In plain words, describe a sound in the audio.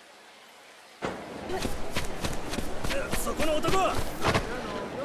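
Footsteps run quickly over packed dirt.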